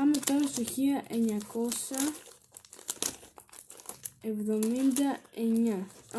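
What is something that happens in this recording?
A plastic sleeve crinkles in a young woman's hands.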